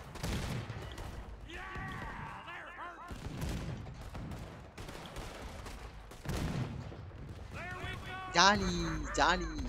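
Shells explode in the distance with dull blasts.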